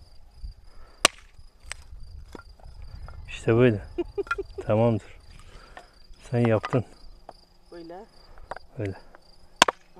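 A hatchet chops into a wooden log with sharp knocks.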